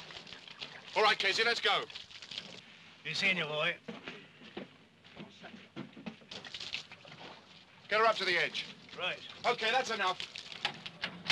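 A man speaks with animation, close by.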